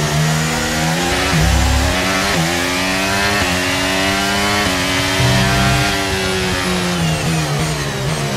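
A racing car engine screams at high revs, rising through each gear and dropping sharply at each gear change.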